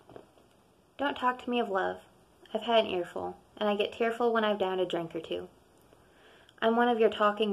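A young woman speaks close to a microphone, calmly reading out.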